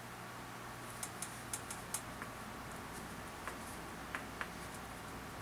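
An antler tool presses and snaps small flakes off a stone with sharp clicks.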